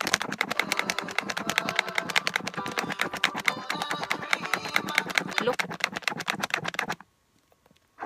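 Thick slime squishes and crackles rapidly as it is stirred.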